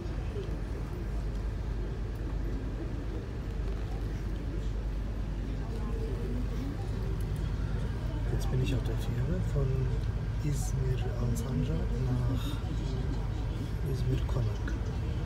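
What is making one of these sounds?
A ferry's engine drones low inside the passenger cabin.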